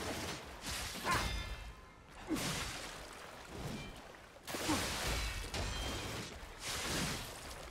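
Blades clash and strike with metallic rings.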